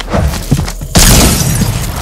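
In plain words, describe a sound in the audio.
A gun fires a burst of loud shots.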